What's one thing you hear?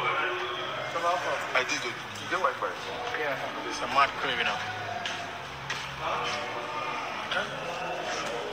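A crowd of people chatters loudly nearby.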